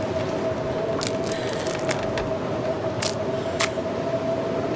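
Sticks snap and crack several times.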